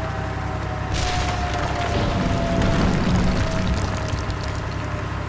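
A wooden structure crashes and splinters as a tank drives through it.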